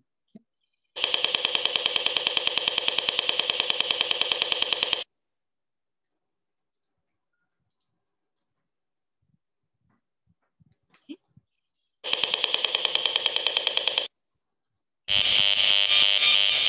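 An electronic meter gives off a fast, perfectly regular rattling buzz.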